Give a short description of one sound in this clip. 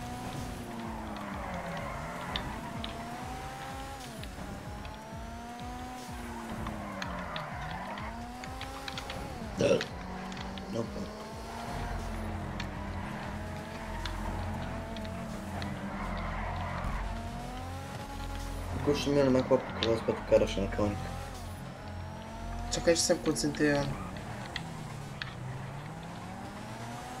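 Tyres screech on tarmac.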